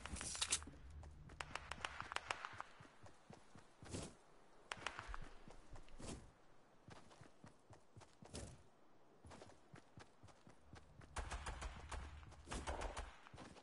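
Footsteps patter quickly across the ground.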